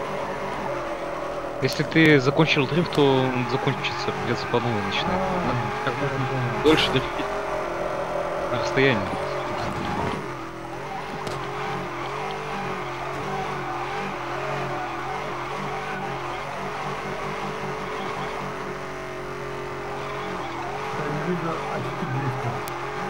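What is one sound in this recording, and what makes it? A car engine revs and roars steadily.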